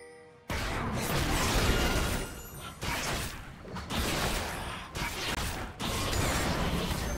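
Game fighting sounds crackle and whoosh as spells hit.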